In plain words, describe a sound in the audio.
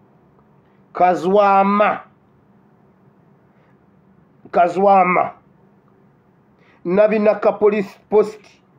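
A man speaks with animation close to the microphone, in short bursts.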